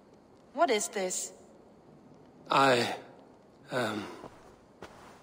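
A woman asks a question calmly.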